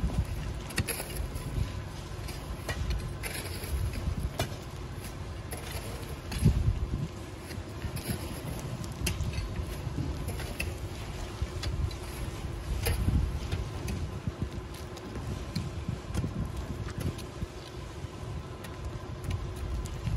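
A shovel scrapes and digs into loose gravel.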